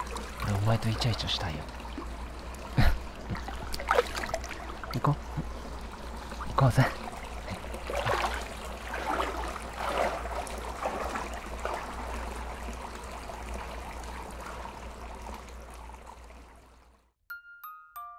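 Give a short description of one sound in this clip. Water laps and splashes in an outdoor hot spring pool.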